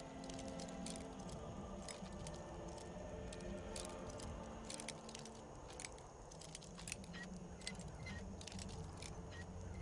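A lockpick scrapes and clicks inside a metal lock.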